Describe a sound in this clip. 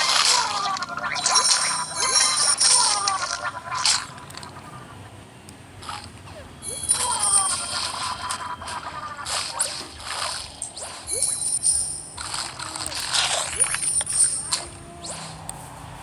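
Cartoonish bite and splash sound effects burst out again and again.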